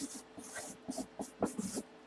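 A marker squeaks on cardboard.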